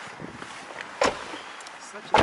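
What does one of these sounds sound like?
A car door thumps shut close by.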